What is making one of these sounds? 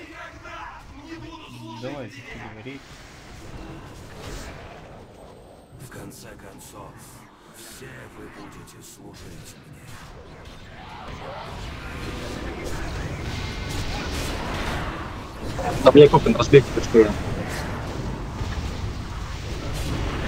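Game combat effects clash and crackle, growing louder.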